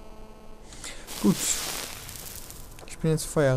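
A campfire crackles nearby.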